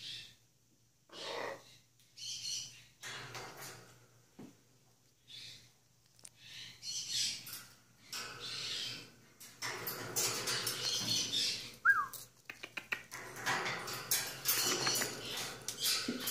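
A macaw squawks loudly.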